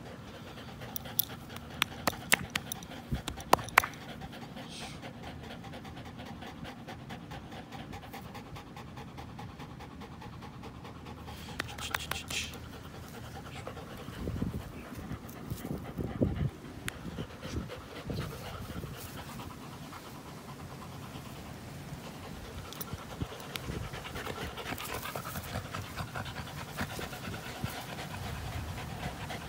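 Dogs pant and snort close by.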